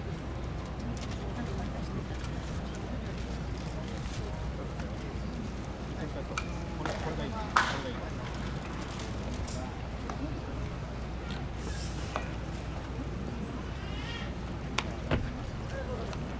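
A bat cracks against a baseball outdoors.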